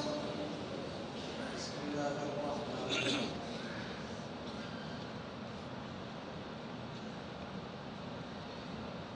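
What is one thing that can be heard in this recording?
A large crowd murmurs softly in a big echoing hall.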